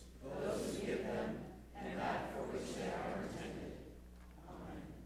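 A woman speaks through a microphone in a large echoing hall.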